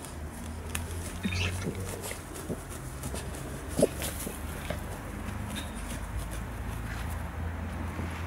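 A dog digs rapidly in loose soil, its paws scratching and scraping.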